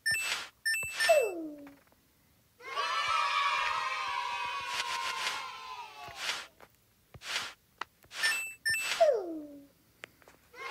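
An electronic tone slides quickly downward.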